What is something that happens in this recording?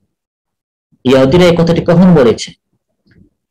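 A man chants in a melodic voice over an online call.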